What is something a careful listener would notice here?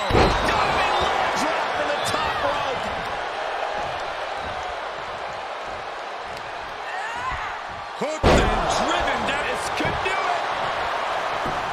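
A large crowd cheers and roars throughout, heard through a broadcast.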